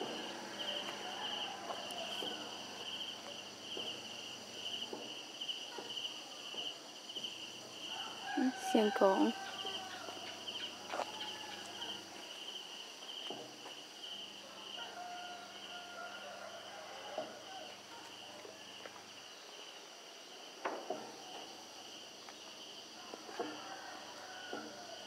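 Footsteps thud on wooden bridge planks.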